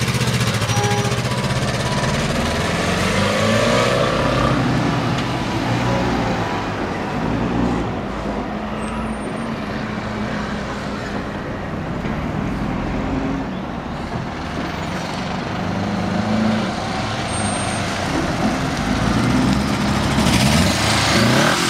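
A motorcycle engine drones as it rides away and comes back, fading and then growing louder.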